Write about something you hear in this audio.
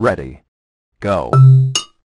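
A short electronic jingle sounds.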